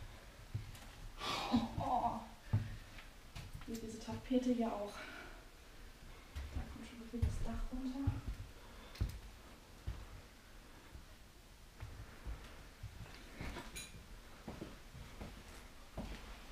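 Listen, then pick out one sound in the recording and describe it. Footsteps thud slowly on a hard floor.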